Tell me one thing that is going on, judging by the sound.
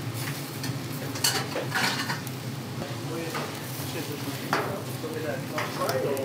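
Meat sizzles and crackles over hot coals.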